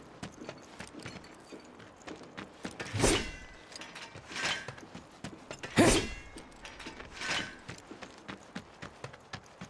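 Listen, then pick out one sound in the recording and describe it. Footsteps crunch quickly over gravel and dirt.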